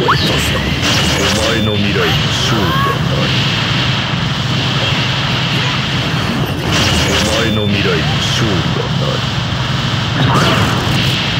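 Heavy blows and energy blasts crash and thud rapidly.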